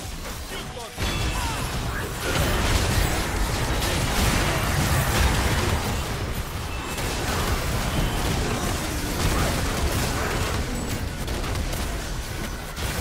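Spell effects crackle and burst as game characters fight.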